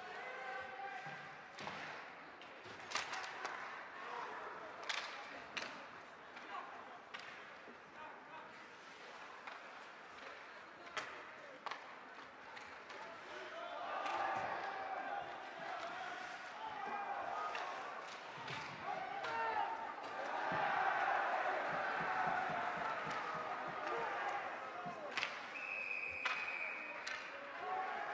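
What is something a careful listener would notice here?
Skate blades scrape and hiss across the ice.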